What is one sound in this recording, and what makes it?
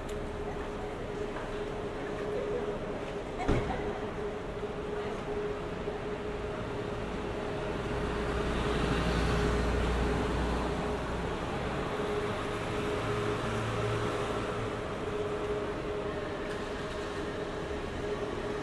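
City traffic rumbles steadily along a nearby street outdoors.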